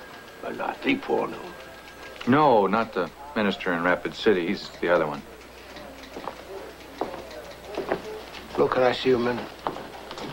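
A middle-aged man speaks firmly.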